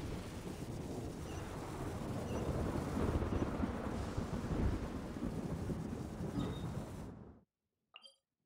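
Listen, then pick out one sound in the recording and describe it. Lightning crackles and rumbles loudly.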